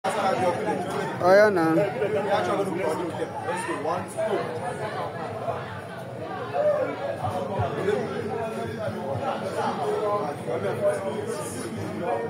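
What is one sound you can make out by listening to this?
Several young men talk and call out with animation nearby, outdoors.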